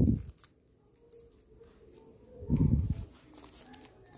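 Paper rustles softly as hands handle a banknote.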